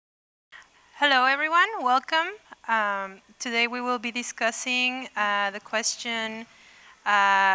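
A woman speaks calmly into a microphone in a large hall.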